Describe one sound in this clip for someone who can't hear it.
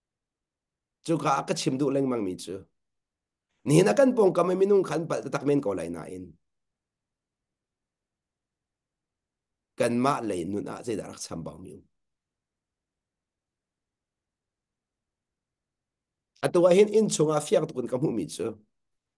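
A middle-aged man speaks calmly into a microphone over an online call, in short bursts with pauses.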